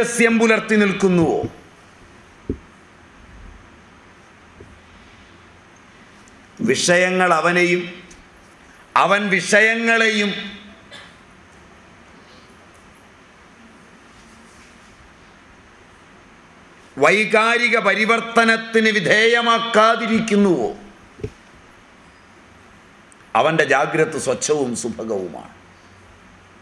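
An elderly man speaks with animation into a microphone, in short bursts with long pauses.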